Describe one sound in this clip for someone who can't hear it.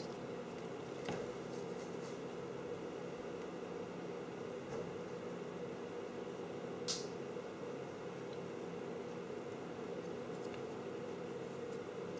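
Wires rustle and click softly as hands handle them.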